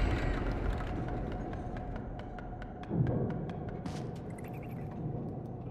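Light footsteps patter quickly across a floor.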